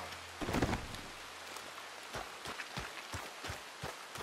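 Footsteps rustle through tall grass.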